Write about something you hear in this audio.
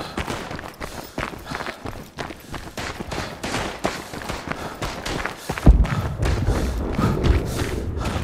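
Footsteps crunch quickly over stone and rubble.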